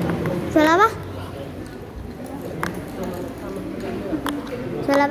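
A young woman speaks close by in a high, rising voice.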